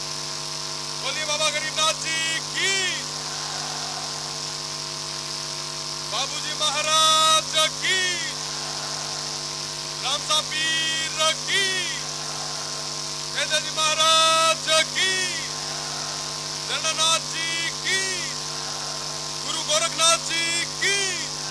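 A young man shouts forcefully in bursts through a microphone and loudspeakers outdoors.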